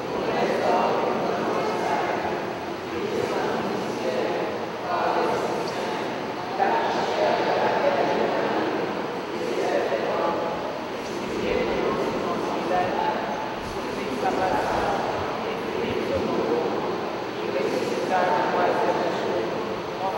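A congregation of men and women sings together in a large echoing hall.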